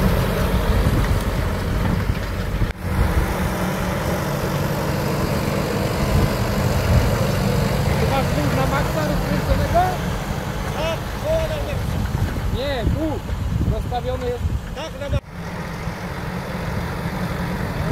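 Soil churns and scrapes under a plough.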